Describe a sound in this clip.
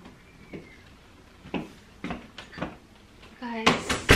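Footsteps knock on a hard floor.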